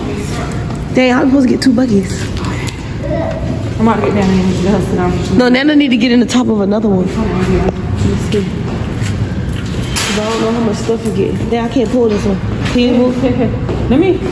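A woman talks casually nearby.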